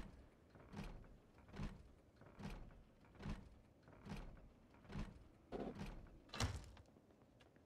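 Footsteps thud at an even pace.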